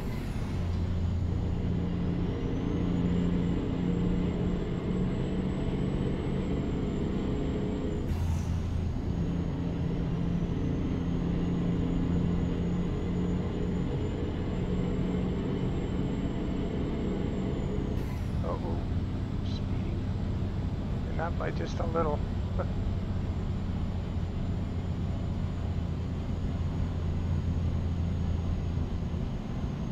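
A truck engine rumbles steadily, with its pitch shifting as the gears change.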